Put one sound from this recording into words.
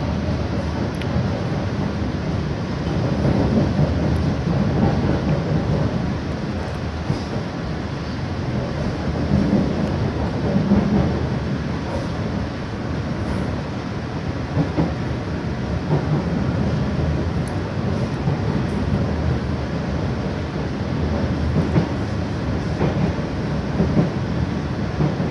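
Water washes along the side of a moving boat.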